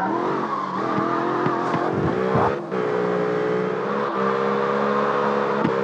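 Tyres screech as a car skids sideways.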